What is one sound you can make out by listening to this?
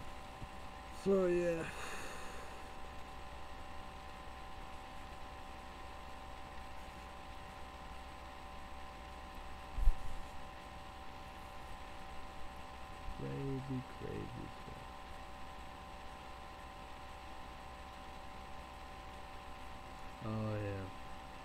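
A young man speaks briefly and quietly, close by.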